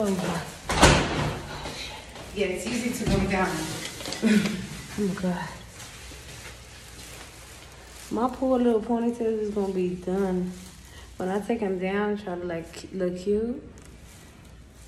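A young woman talks casually, close to a phone microphone, in a small echoing space.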